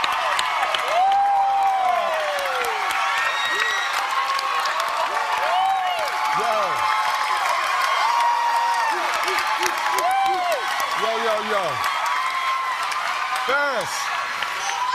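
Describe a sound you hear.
People in a crowd whoop and scream with excitement.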